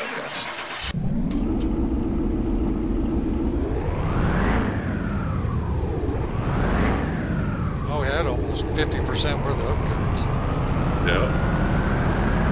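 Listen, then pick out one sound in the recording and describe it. A car engine revs hard, rising and falling in pitch, then climbs steadily.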